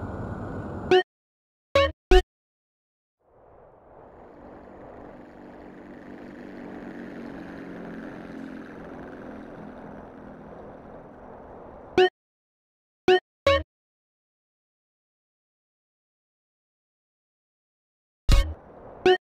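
Short menu blips sound a few times.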